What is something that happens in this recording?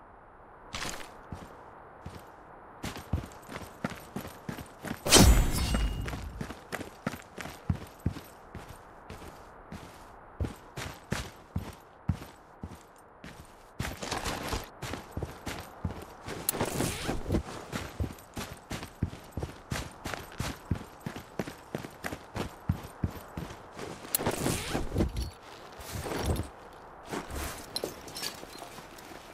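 Footsteps run quickly over gravel and dirt.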